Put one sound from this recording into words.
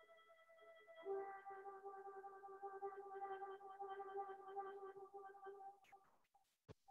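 An elderly man plays a steady note on a wind instrument.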